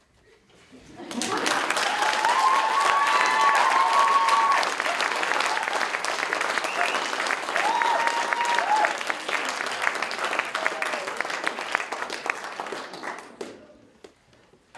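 An audience claps and applauds loudly.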